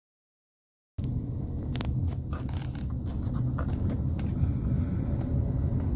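A car's tyres hum steadily on a road.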